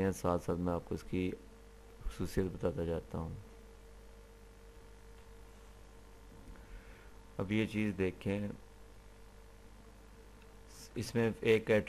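A young man speaks calmly into a close microphone, explaining in short phrases with pauses.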